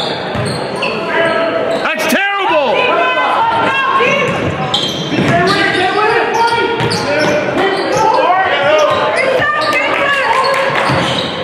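A crowd murmurs and calls out in the stands.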